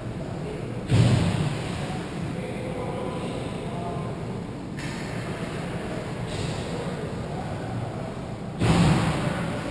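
A puck smacks hard against the boards.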